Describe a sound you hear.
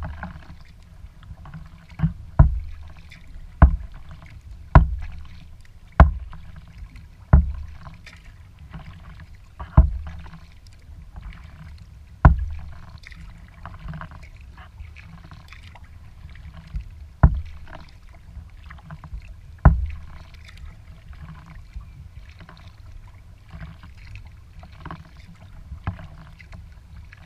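Water laps softly against a kayak's hull.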